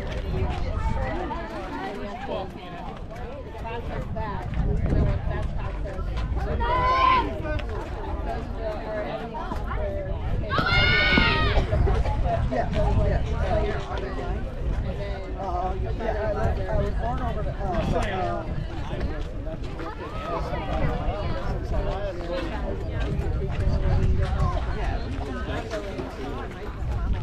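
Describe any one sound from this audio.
Young women and girls talk and call out nearby, outdoors.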